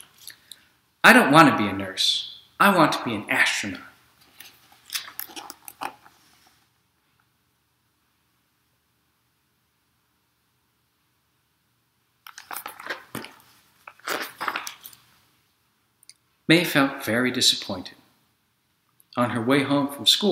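A man speaks calmly and clearly, close to the microphone, with pauses.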